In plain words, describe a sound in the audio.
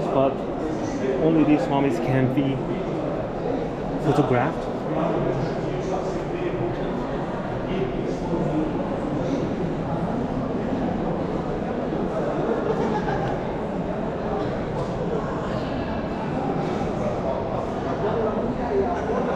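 A crowd of visitors murmurs and chatters in a large echoing hall.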